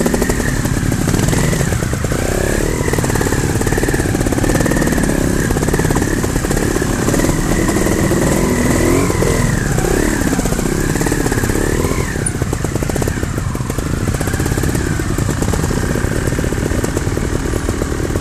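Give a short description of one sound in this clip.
Motorcycle engines drone ahead along the trail.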